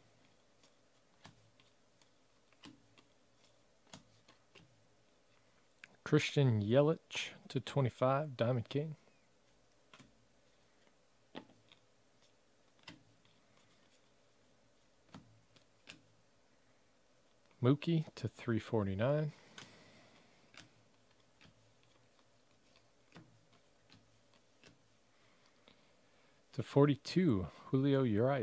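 Trading cards flick and rustle softly as a hand deals them one by one.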